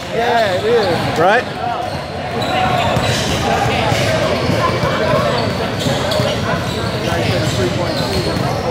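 Players and onlookers call out and chatter in a large echoing gym.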